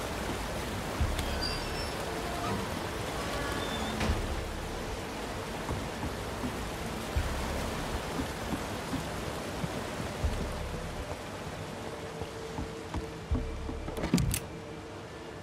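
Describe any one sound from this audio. Heavy footsteps thud slowly on wooden boards and stone.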